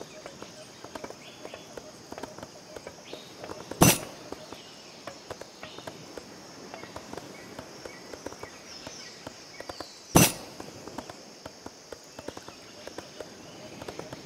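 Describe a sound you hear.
Hammers knock steadily on wood in quick, uneven blows.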